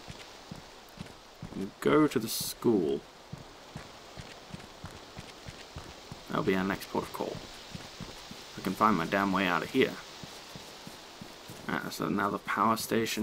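Footsteps fall on the ground at a walking pace.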